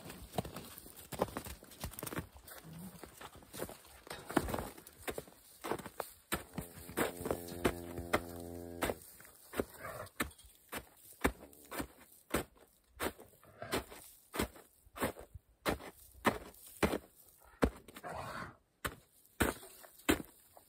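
Footsteps crunch on snow and straw.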